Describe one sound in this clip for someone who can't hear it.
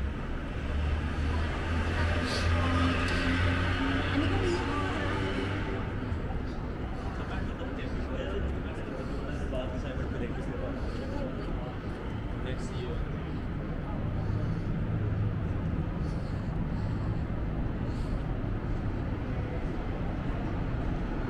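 City traffic hums steadily in the street outdoors.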